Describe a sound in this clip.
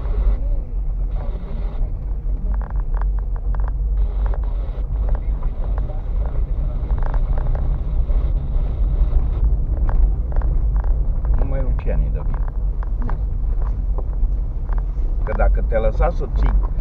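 Tyres crunch and bump over a rough dirt road.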